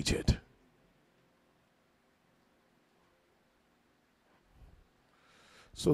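A man speaks with emphasis into a microphone.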